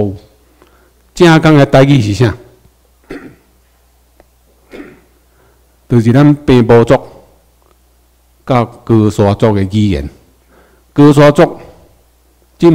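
A man speaks through a microphone and loudspeakers in phrases with pauses, in a room with some echo.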